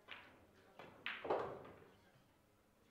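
Billiard balls knock against each other and roll.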